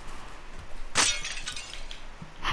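Glass shatters as a window breaks.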